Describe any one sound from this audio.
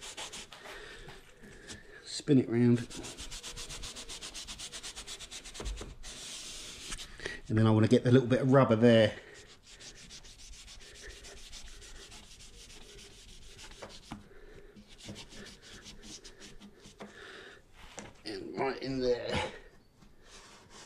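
A pad scrubs quickly back and forth against rubber window trim.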